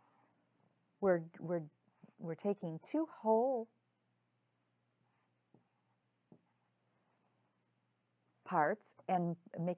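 An older woman speaks calmly and clearly, close by.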